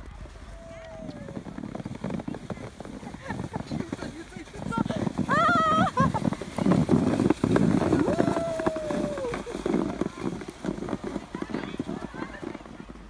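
A sled scrapes and hisses over snow as it slides closer.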